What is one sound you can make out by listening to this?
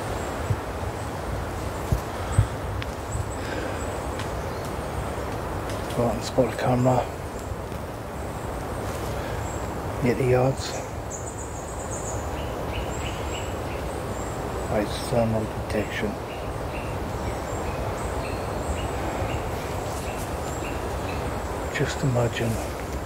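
Wind rustles softly through the leaves of trees outdoors.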